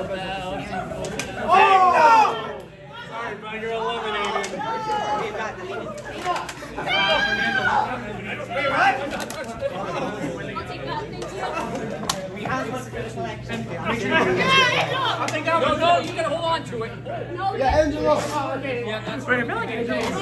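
A group of adults and teens laugh in a large echoing hall.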